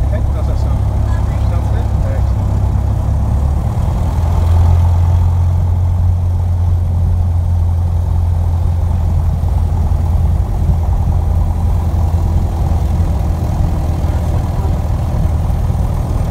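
Wheels rumble over a grass runway.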